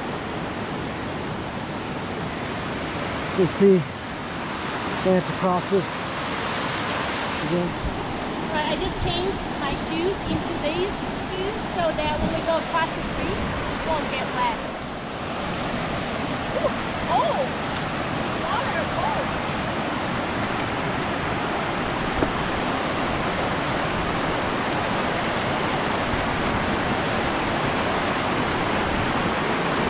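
A rushing mountain stream splashes over rocks nearby.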